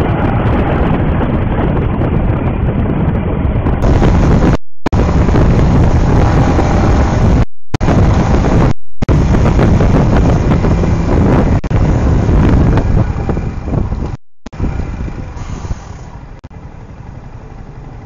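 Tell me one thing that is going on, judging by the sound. A scooter engine hums steadily on the move.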